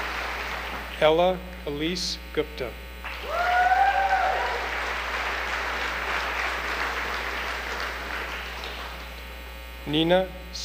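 A man reads out names through a loudspeaker.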